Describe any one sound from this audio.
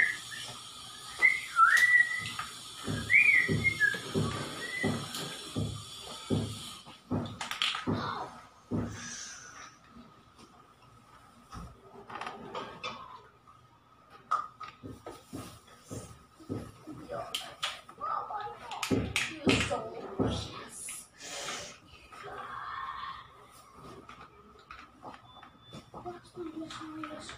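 Dishes and pots clink and clatter as they are handled.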